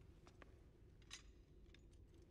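A metal gun clicks sharply.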